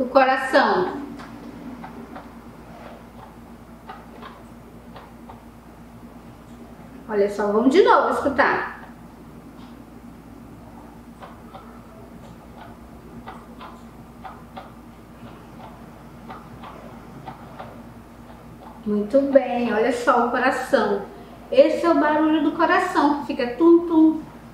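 A woman speaks clearly and slowly, close by.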